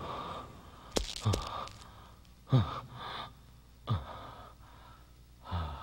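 Heavy footsteps thud slowly.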